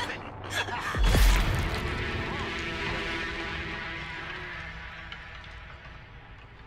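A magic spell goes off with a deep, booming burst that rings and slowly fades.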